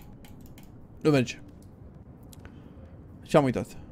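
A young man speaks briefly and with animation, close to a microphone.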